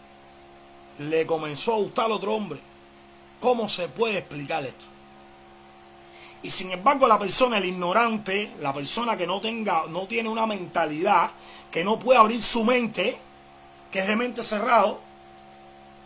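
A man speaks with animation close to a microphone, in short bursts with pauses.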